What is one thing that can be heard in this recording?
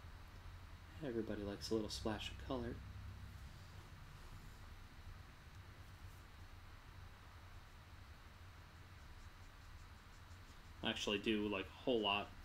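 A man talks calmly into a close microphone.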